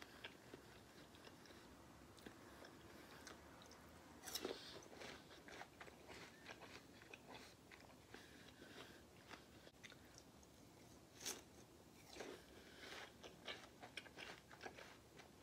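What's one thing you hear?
A young woman chews food close to a microphone with wet, crunchy mouth sounds.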